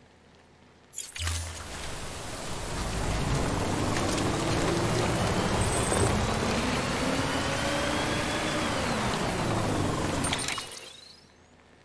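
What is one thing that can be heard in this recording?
A truck engine rumbles and revs as the vehicle drives along a road.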